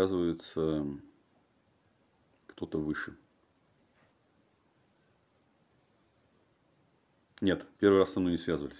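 A man speaks calmly and close to the microphone, in short bursts with pauses.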